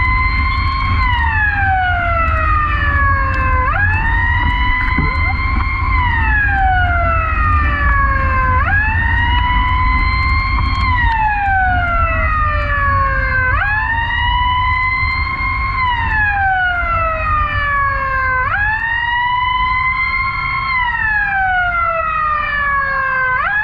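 A siren wails nearby, rising and falling slowly over and over.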